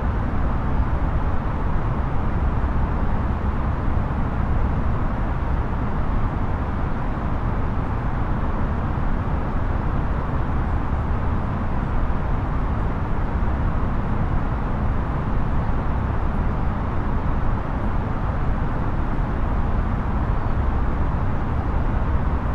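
Jet engines drone in a steady low roar.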